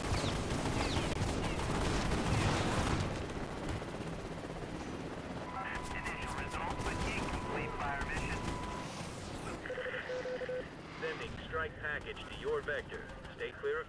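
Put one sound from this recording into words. A helicopter's rotor thumps overhead.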